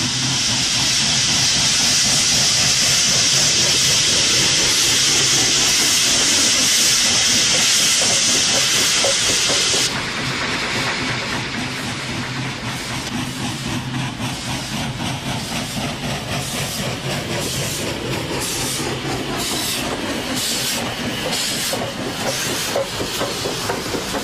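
Steel wheels rumble and clank on the rails.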